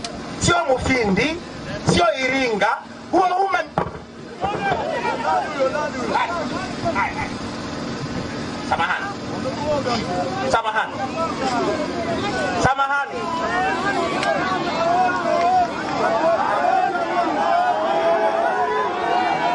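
A man speaks forcefully through a microphone and loudspeakers outdoors.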